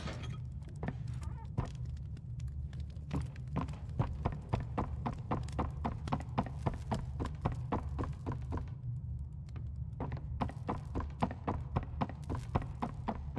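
Footsteps tap on a wooden floor at a steady walking pace.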